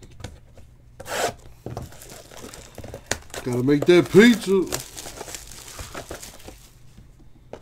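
Plastic wrapping crinkles and tears under handling.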